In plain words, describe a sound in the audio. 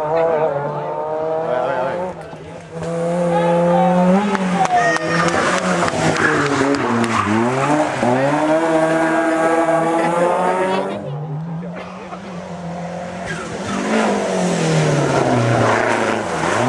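A rally car engine revs hard and roars past at high speed.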